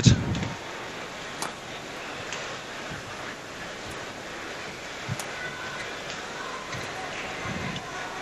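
A racket strikes a shuttlecock with sharp pops.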